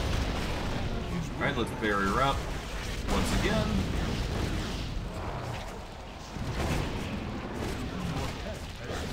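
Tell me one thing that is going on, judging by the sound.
Heavy impacts thud during combat.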